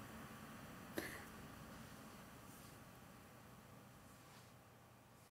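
A young woman laughs softly close to a microphone.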